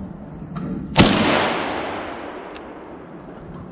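A shotgun fires once, loud and close, and the blast echoes through the woods.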